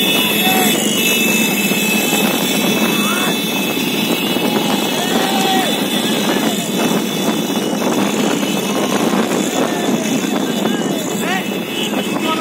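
Motorcycle engines run nearby.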